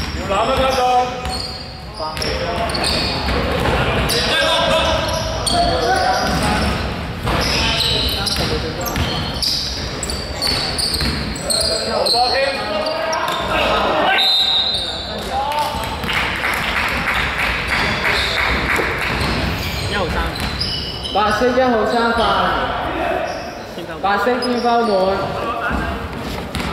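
Young men shout to one another on a court in an echoing hall.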